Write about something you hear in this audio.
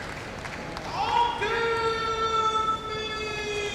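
A man chants in a long, drawn-out voice.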